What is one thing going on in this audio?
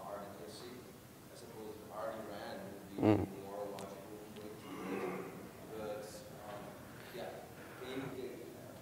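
A man speaks steadily through a microphone in a large room.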